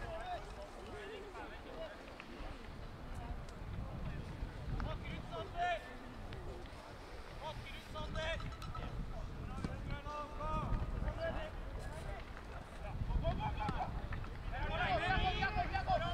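Players shout and call out across an open field.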